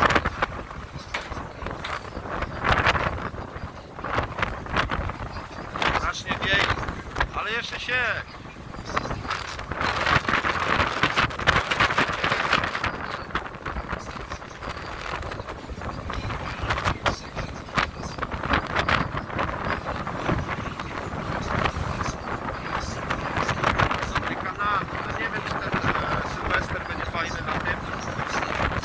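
Wind gusts noisily across the open water.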